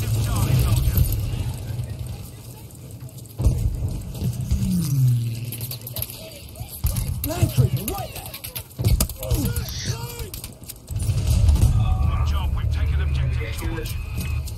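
Explosions rumble and boom in the distance.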